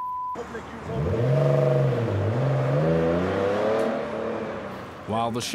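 A car engine rumbles and revs as a car drives past.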